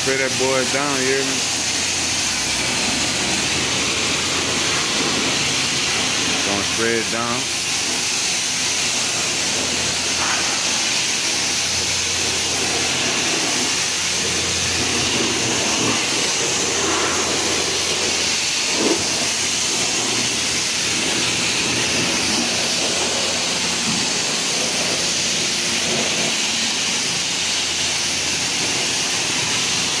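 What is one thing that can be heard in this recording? A pressure washer sprays a loud, steady hissing jet of water.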